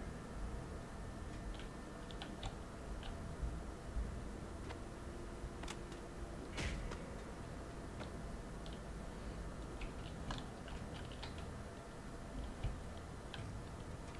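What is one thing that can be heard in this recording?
Footsteps tap on a hard surface.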